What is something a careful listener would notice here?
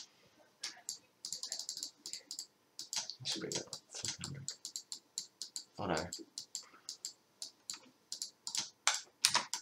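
Short clicks tick quickly as menu sliders move.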